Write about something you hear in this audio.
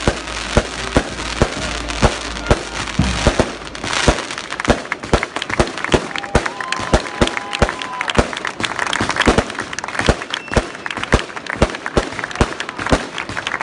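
A large crowd claps in a steady rhythm outdoors.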